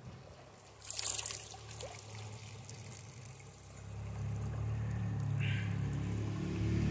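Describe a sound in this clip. Water splashes softly as a hand dips into a shallow stream.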